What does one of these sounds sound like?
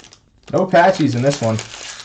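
A plastic wrapper crinkles between fingers.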